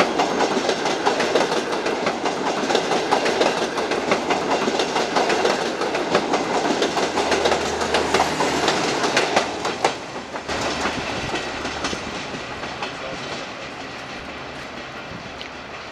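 A train rumbles along the rails with rapid clattering, then fades as it pulls away.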